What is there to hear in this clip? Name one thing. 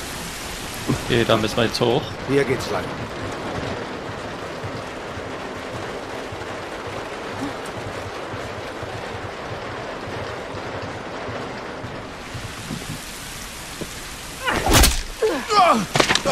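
A man speaks animatedly into a close microphone.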